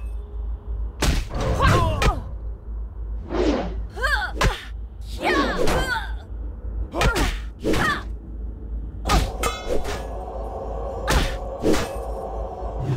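Weapons strike in a fight, with sharp blows coming again and again.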